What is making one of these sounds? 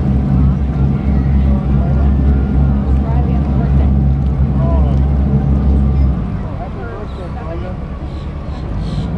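A crowd chatters in the distance.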